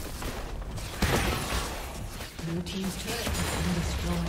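A large explosion booms as a tower is destroyed.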